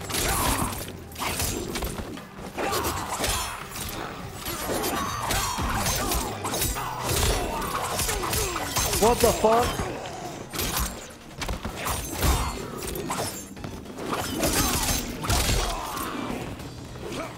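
Blades slash and swoosh through the air.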